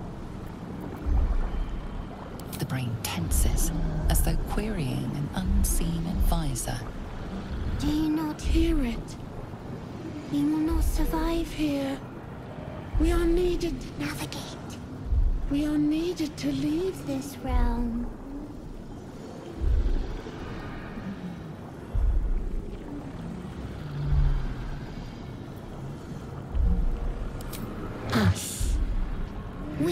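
A deep heartbeat throbs slowly and steadily.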